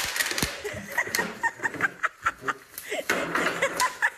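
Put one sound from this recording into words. A wooden chair clatters onto the floor.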